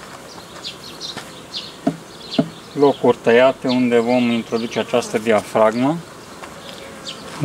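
Bees buzz around open hives.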